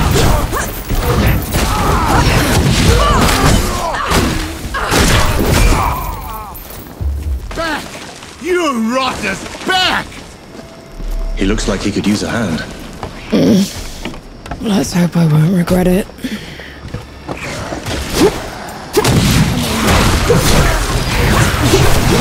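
Blades clash and thud in a fight.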